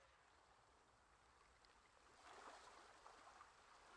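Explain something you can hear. Waves wash gently around a ship at sea.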